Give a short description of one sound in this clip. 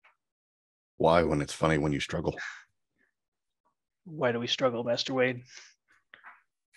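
A man speaks with animation through a microphone on an online call.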